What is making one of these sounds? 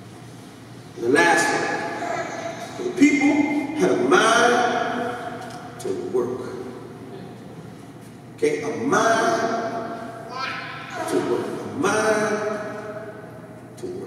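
A man preaches with animation through a microphone and loudspeakers in an echoing hall.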